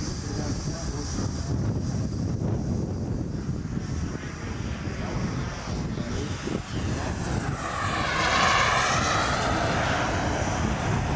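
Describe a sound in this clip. A jet plane roars high overhead, its whine swelling and sweeping.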